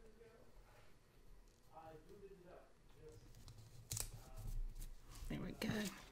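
Paper rustles and crinkles under a hand.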